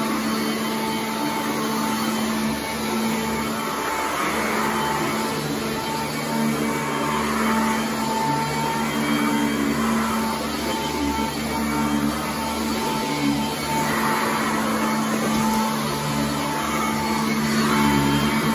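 A vacuum cleaner hums steadily close by.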